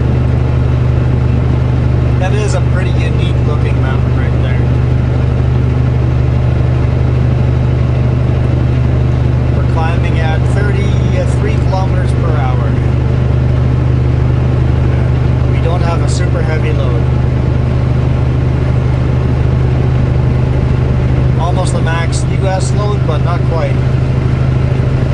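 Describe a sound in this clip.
A truck engine drones steadily at low pitch from inside the cab.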